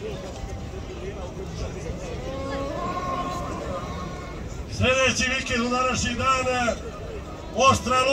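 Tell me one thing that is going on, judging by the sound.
A large outdoor crowd murmurs and chatters in the distance.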